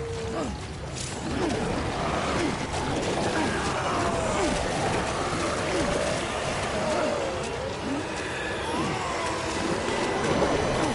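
Footsteps splash through shallow water on rocky ground.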